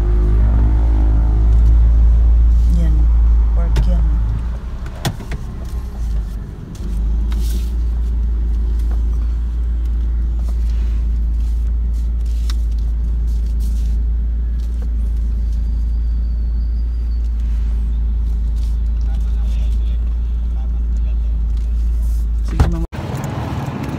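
A car engine hums low and steady as the car drives.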